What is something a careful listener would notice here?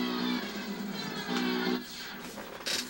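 Racing game engine sounds and music play from a television speaker.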